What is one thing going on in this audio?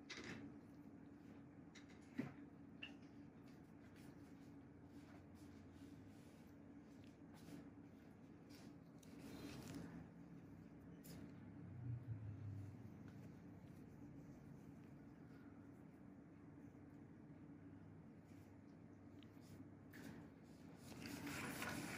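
Rubber gloves rub and squeak softly against skin.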